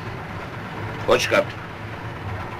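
A middle-aged man speaks gruffly nearby.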